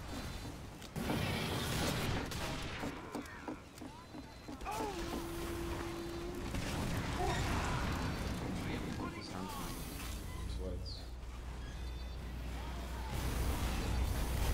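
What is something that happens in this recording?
Gunshots and explosions crack in a game fight.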